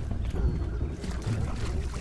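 Water splashes underfoot as someone wades through a shallow puddle.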